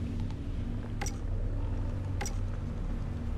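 Menu selection clicks sound now and then.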